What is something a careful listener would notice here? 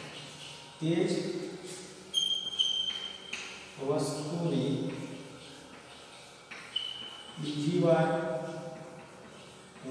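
A man speaks in a calm, teaching tone.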